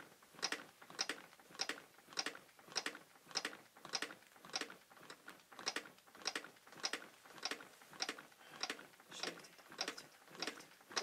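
Chest compressions on a training manikin make a fast, steady rhythmic clicking and thumping.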